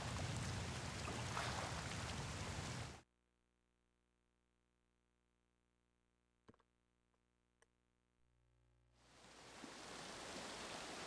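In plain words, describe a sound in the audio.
A waterfall roars close by.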